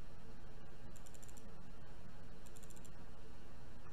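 Soft sparkling game effects shimmer twice.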